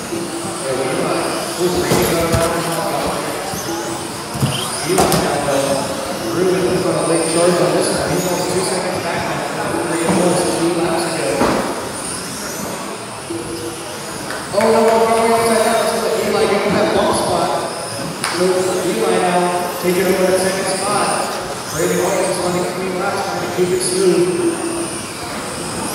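Small electric motors whine in high pitch as model cars race past.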